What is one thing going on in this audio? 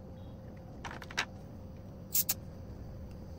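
A metal gas canister clicks sharply into a fitting.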